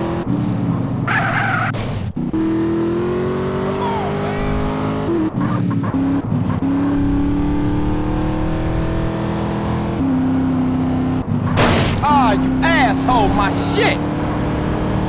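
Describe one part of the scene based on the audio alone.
Tyres skid and squeal on the road.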